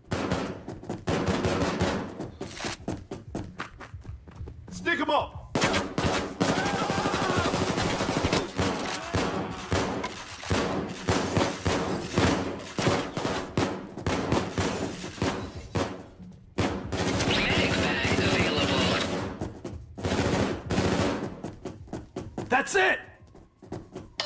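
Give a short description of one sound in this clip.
Footsteps thud across wooden floors.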